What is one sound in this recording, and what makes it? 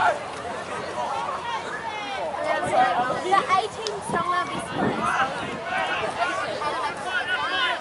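Young men shout to each other across the field.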